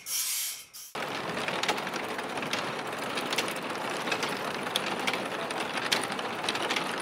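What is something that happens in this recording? Clay tiles clink and clatter as they are stacked.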